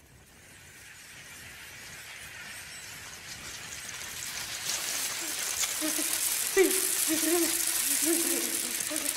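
Many beetles skitter and chitter, growing louder as a swarm approaches.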